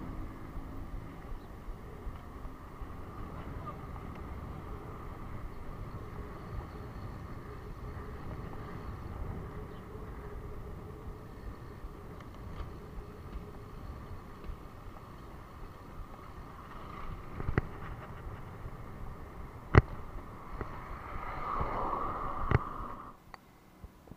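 Wind rushes steadily past a moving bicycle.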